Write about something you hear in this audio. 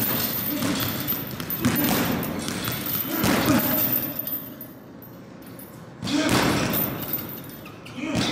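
Gloved fists thump against a swinging ball.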